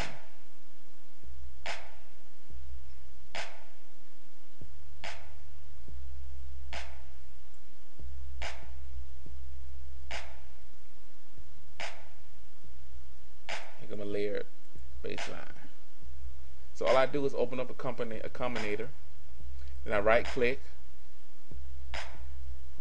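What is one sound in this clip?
An electronic drum beat plays at a steady pace.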